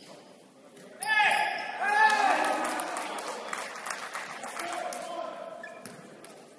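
A crowd of spectators cheers and shouts loudly, then quiets.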